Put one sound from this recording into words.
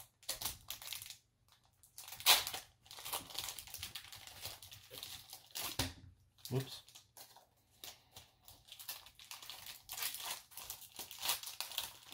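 Foil card wrappers crinkle and rustle close by as fingers tear them open.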